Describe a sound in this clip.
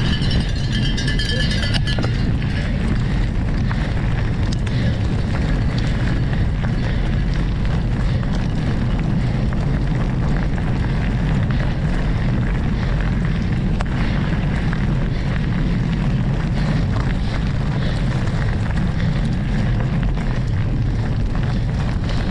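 Bicycle tyres crunch and rattle over gravel.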